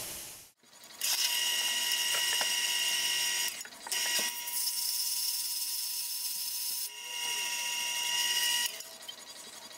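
A drill bit grinds into plastic on a spinning lathe with a high whine.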